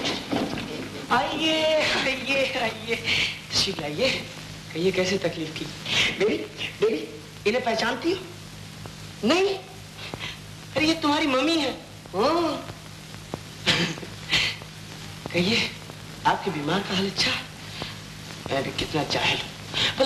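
A man talks playfully nearby.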